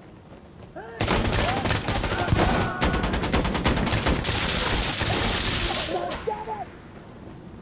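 Rapid gunfire rattles loudly and echoes.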